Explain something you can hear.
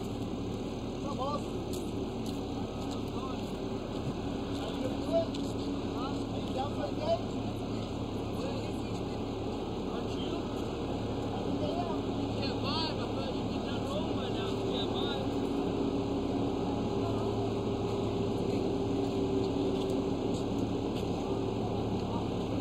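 A paving machine's engine hums in the background.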